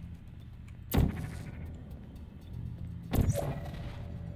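A portal gun fires with a sharp zap.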